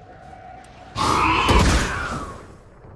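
A magical ability bursts with a loud whoosh.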